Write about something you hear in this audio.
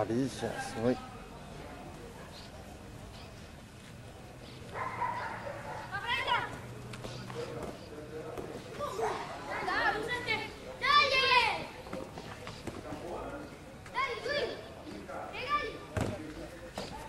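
Young children shout excitedly close by.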